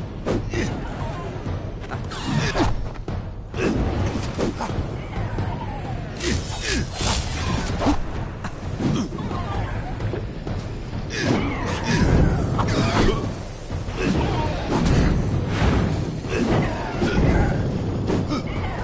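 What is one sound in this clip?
Magic spells burst and crackle in a fight.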